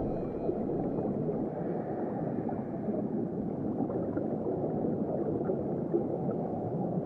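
Bubbles pop softly now and then.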